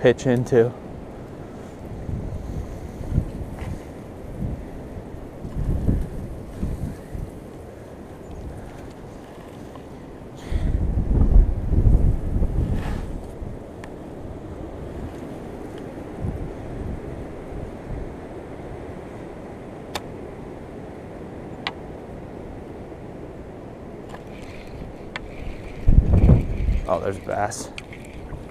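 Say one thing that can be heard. Wind gusts buffet the microphone outdoors.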